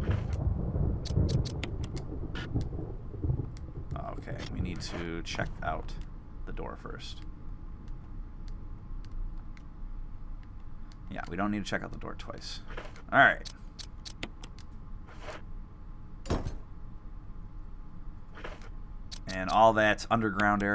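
Short electronic clicks sound as menu items are selected.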